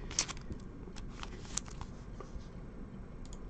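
A trading card rustles and slides between fingers.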